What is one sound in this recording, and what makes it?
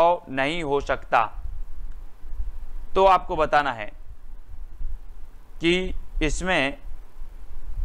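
A man speaks calmly into a close microphone in short phrases.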